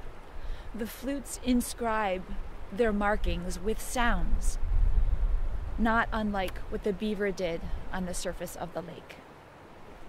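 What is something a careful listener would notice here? A woman speaks calmly and closely to the microphone.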